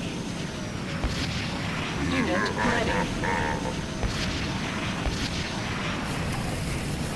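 A hovering craft's engine hums steadily.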